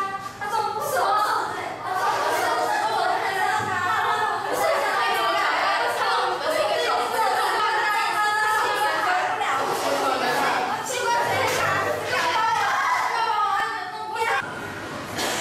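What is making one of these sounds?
Teenage girls laugh and chatter loudly close by.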